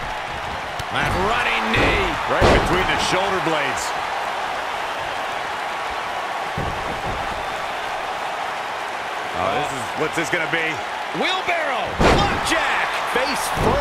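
Bodies slam and thud heavily onto a wrestling mat.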